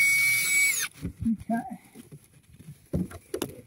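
Tools knock and clatter against wood.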